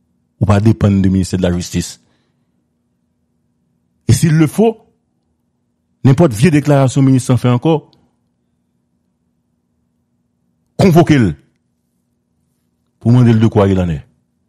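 A man speaks with animation over a phone line, in short bursts with pauses.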